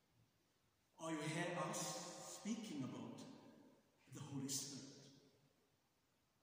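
A man speaks slowly and solemnly into a microphone in a large echoing hall.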